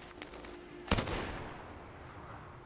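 A gunshot bangs loudly and rings away.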